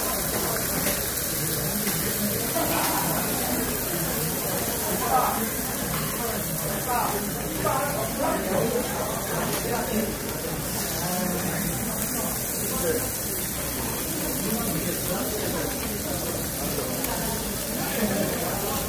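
Meat sizzles steadily on a hot grill plate.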